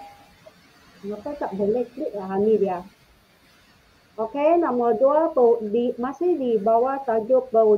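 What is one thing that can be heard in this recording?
A woman speaks through an online call, explaining calmly.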